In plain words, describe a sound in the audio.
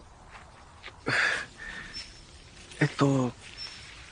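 A young man speaks quietly and hesitantly nearby.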